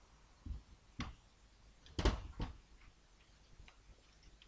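A plastic casing clunks as it is lifted and turned over.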